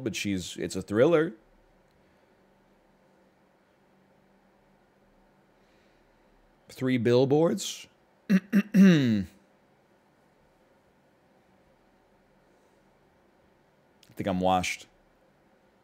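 A man speaks in short bursts into a close microphone, calmly and thoughtfully.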